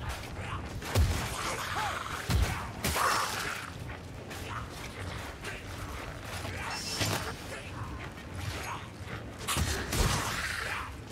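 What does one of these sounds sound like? Heavy weapons clash and thud in a game fight.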